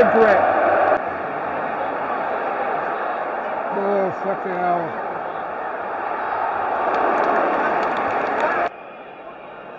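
A large stadium crowd murmurs and roars in the distance.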